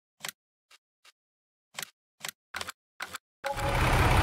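Menu clicks tick softly, a few times.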